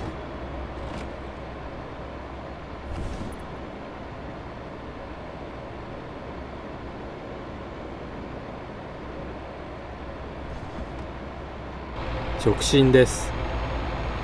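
A heavy truck engine drones while cruising on a motorway.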